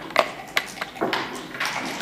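A hand presses a game clock button with a click.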